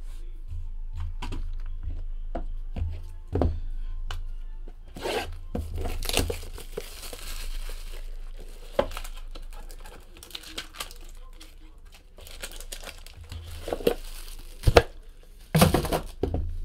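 Cardboard boxes knock and slide against each other.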